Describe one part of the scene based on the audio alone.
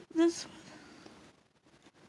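A small plastic toy clicks against a plastic box.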